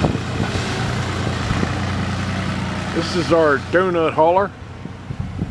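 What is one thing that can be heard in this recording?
A tractor engine idles nearby with a low, steady rumble.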